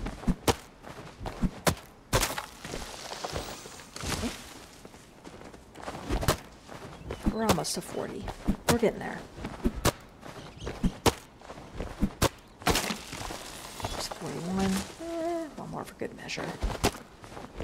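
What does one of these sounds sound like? An axe chops into wood with sharp, repeated thuds.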